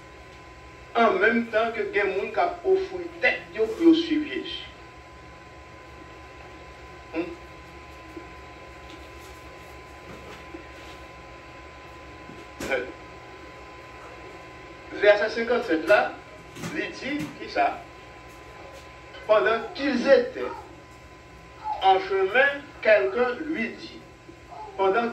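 An older man preaches into a microphone in slow bursts, with long pauses.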